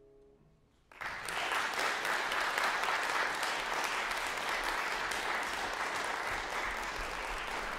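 Applause breaks out and goes on steadily in an echoing hall.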